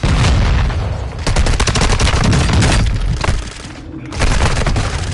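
Heavy gunfire rattles loudly and rapidly.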